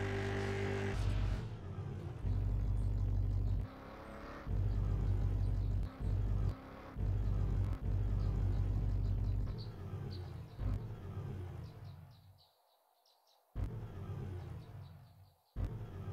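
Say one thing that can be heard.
A car engine revs in short bursts.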